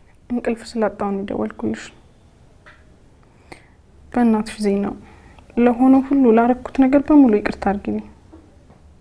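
A young woman speaks quietly and anxiously into a phone, close by.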